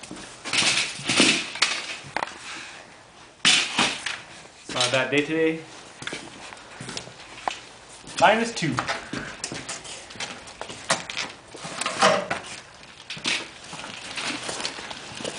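A loaded wire cart rattles and clatters as it is pulled along.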